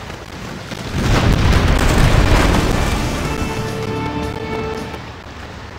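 Ship cannons boom and a loud explosion rumbles.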